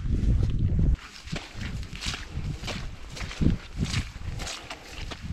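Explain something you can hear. Footsteps swish through long grass.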